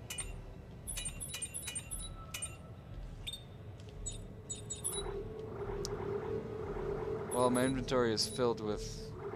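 Short electronic menu blips sound in quick bursts.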